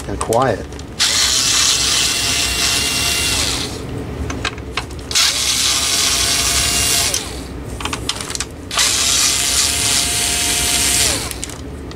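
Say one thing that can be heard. A cordless screwdriver whirs in bursts.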